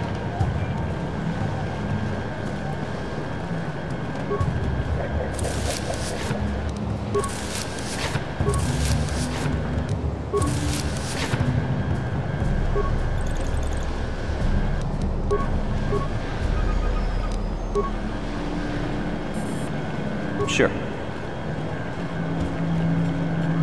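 Footsteps run across a hard stone floor.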